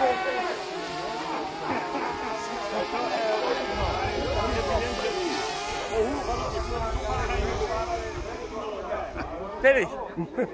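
A drone's rotors whine steadily overhead.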